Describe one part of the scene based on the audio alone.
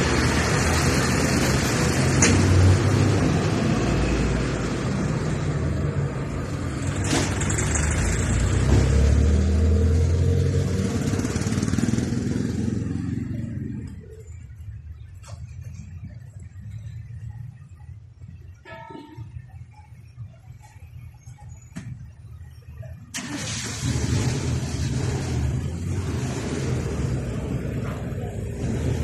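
Cars drive past on a street.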